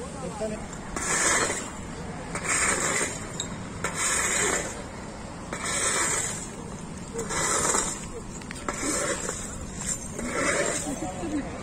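Glass bottles clink as they are gathered up.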